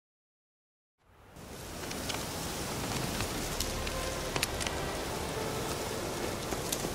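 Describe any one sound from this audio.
A soft outdoor breeze rustles through trees.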